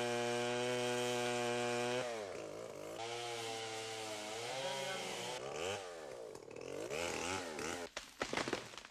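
A chainsaw roars and revs while cutting into wood.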